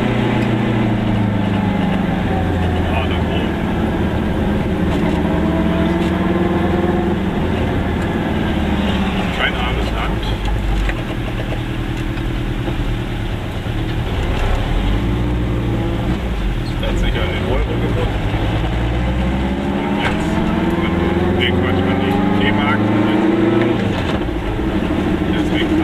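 A car engine hums steadily from inside the car, rising and falling in pitch as it speeds up and slows down.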